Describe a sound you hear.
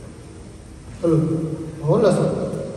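A group of stringed lutes plays a plucked tune in a hall.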